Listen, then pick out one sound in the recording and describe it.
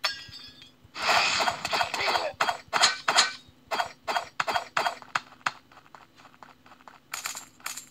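Rapid blade slashes clash and ring.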